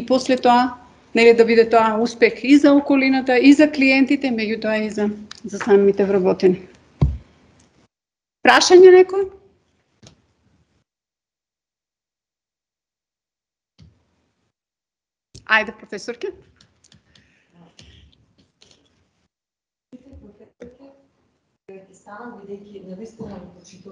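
A man speaks at a steady pace into a microphone, heard over an online call, with long pauses.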